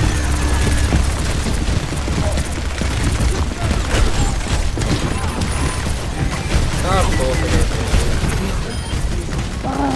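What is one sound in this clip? Rapid gunfire blasts from a large weapon.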